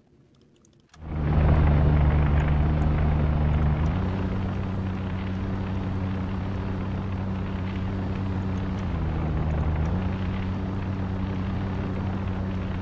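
An aircraft engine drones steadily overhead.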